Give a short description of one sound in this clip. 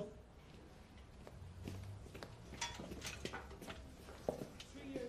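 Footsteps tap on a hard floor indoors.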